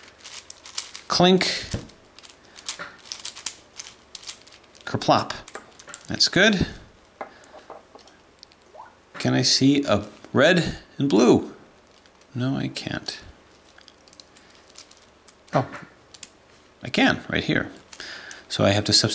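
Plastic puzzle pieces click and clatter as they are twisted.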